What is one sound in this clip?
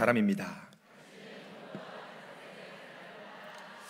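A large audience murmurs quietly in a large hall.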